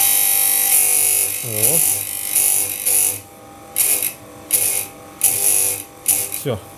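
A chain sharpener's grinding wheel whirs and grinds against a saw chain in short bursts.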